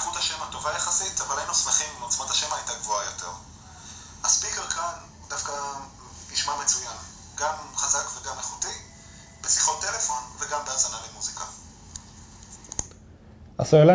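A man speaks through a small phone speaker.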